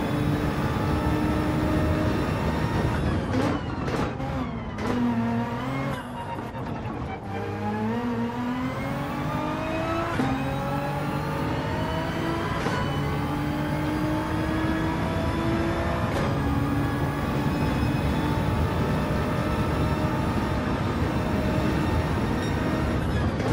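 A racing car engine roars loudly, dropping in pitch while braking and rising through the gears.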